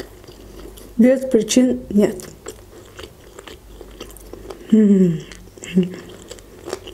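A young woman hums with pleasure while chewing.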